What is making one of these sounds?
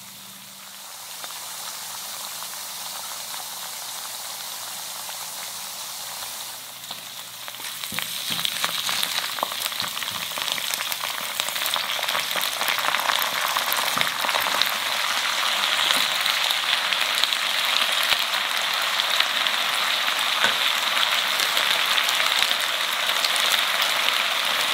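Food sizzles and crackles in hot oil.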